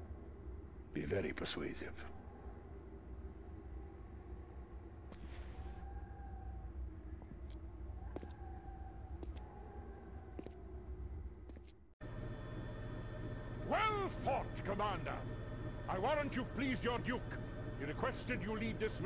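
A man speaks in a low, menacing voice close by.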